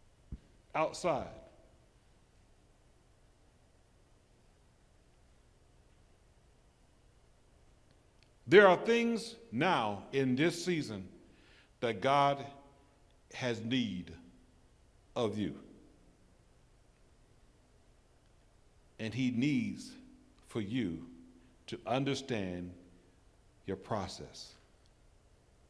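An elderly man speaks slowly and deliberately into a microphone, with long pauses, heard through a loudspeaker.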